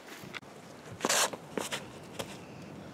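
Footsteps scuff on a tee pad during a disc throw.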